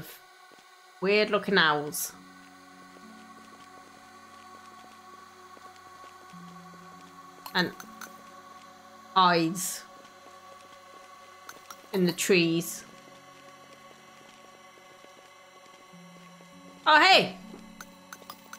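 A young woman speaks with animation into a microphone, in short bursts.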